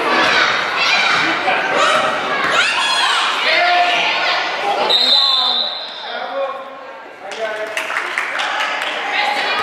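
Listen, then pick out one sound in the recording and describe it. Young girls shout and cheer loudly in a large echoing hall.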